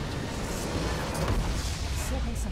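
A base structure bursts with a loud, deep explosion.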